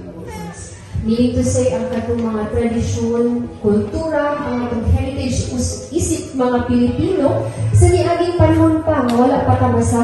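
A woman speaks into a microphone over a loudspeaker in a large echoing hall.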